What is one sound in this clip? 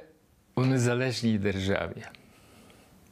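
An elderly man speaks close to a microphone, with emotion.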